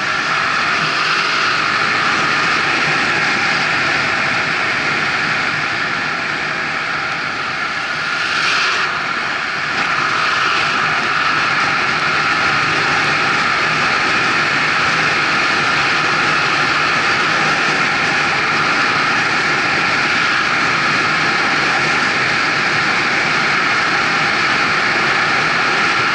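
Wind and road noise roar steadily from a moving car.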